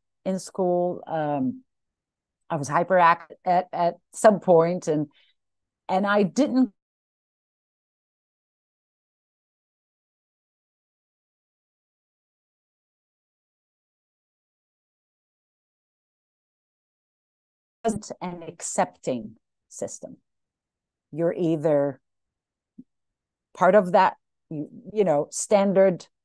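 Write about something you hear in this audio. A young woman speaks calmly through an online call, with long pauses.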